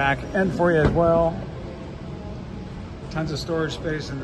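A car's tailgate latch clicks and the tailgate lifts open.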